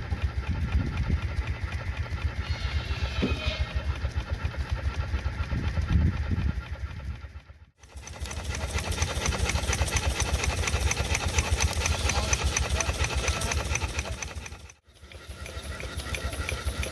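Metal rods of a steam engine clatter and tick as they move.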